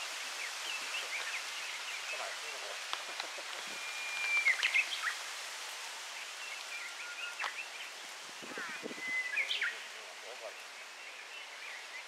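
Birds chirp and trill outdoors.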